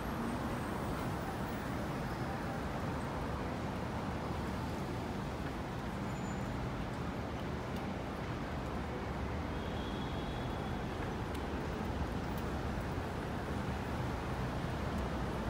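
Footsteps tap on a pavement.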